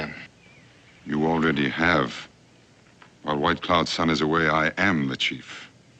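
A second man answers in a calm, deep voice close by.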